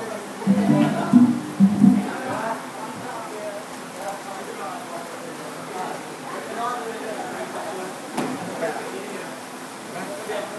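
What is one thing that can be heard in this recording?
Several people chatter and laugh nearby.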